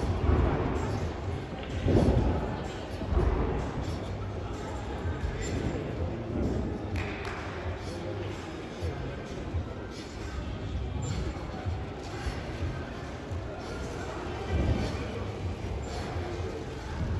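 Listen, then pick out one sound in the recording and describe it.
A gymnast's swings on a bar creak and thump.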